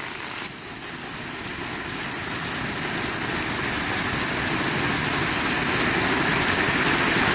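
Rainwater splashes off a roof edge onto the ground.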